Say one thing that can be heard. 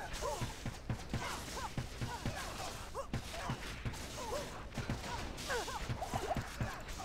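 Magic lightning crackles and zaps loudly.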